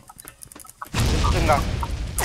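An explosion booms and rumbles loudly.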